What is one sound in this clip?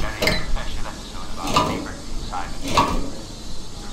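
A metal valve wheel creaks and scrapes as it turns.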